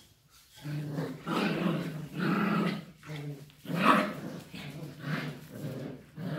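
A puppy whines and yelps close by.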